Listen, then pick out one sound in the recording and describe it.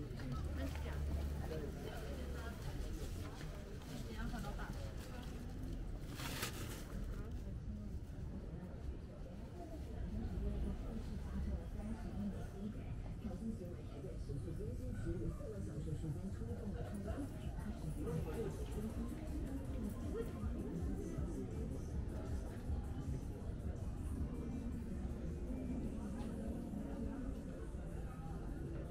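A crowd of people chatters in the background throughout.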